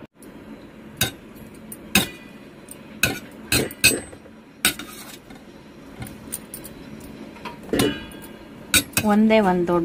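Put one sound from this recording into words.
A metal skimmer clanks and scrapes against a metal pot.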